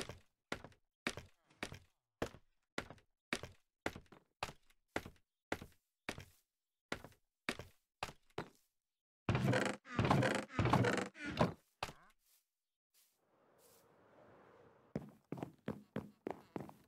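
Footsteps tap on hard blocks at a steady pace.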